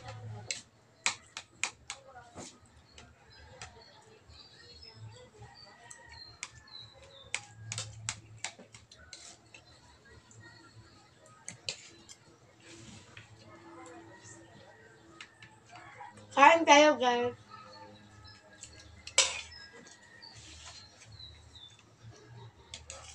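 Spoons and forks clink against plates.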